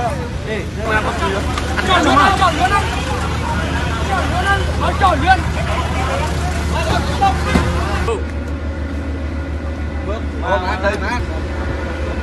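A crowd of men and women talk over one another outdoors.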